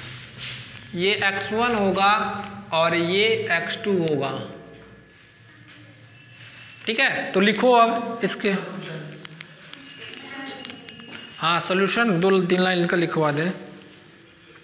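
A man explains calmly and clearly, speaking close by.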